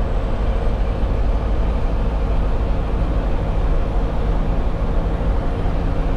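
Tyres roll with a steady rumble on the road.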